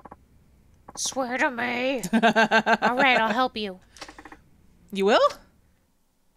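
Two young women talk and laugh with animation through a microphone.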